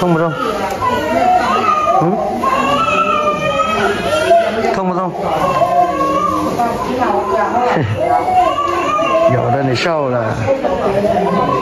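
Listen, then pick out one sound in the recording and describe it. A young child whimpers and cries close by.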